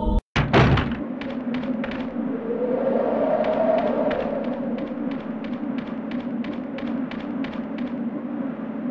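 Footsteps run quickly across the ground.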